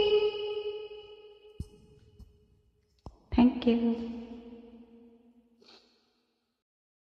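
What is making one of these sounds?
A young woman sings long, held notes close to a microphone.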